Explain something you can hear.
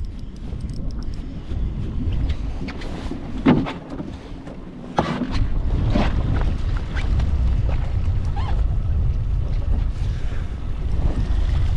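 Wind buffets the microphone outdoors on open water.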